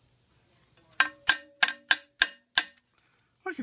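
Fingers tap and knock on a firm rubbery disc.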